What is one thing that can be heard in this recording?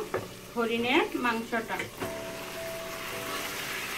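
Raw meat tumbles into a pot with a soft thud.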